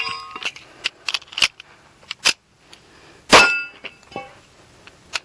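A pistol fires rapid, sharp shots close by.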